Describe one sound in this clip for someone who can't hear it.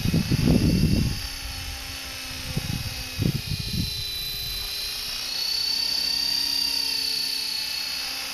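A model helicopter's motor whines steadily with a high pitch.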